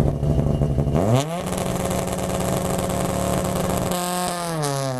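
A rally car engine revs up sharply.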